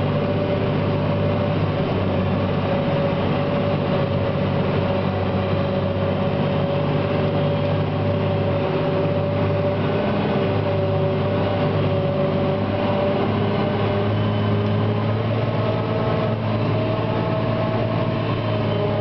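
A tractor engine drones steadily, heard from inside the cab.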